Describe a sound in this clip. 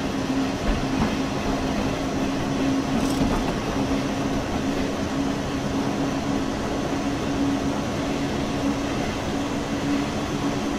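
An electric locomotive hums steadily as it rolls along the rails.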